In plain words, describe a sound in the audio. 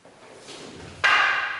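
A man gives a sharp, loud shout in an echoing hall.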